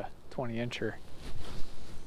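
A fishing reel whirs as its handle is wound.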